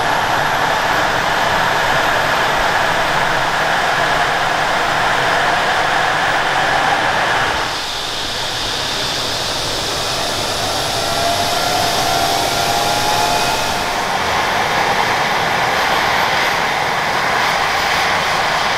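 Helicopter rotor blades whoosh steadily as they turn.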